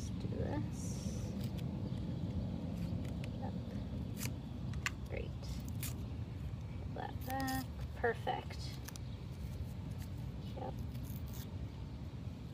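Masking tape crackles as it is peeled and pressed down.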